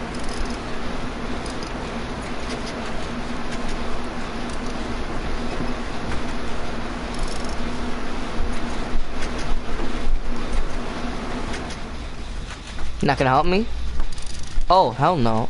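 A generator engine rattles and clanks nearby.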